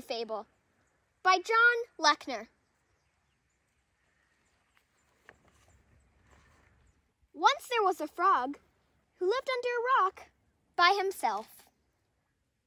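A young girl speaks brightly and clearly, close by.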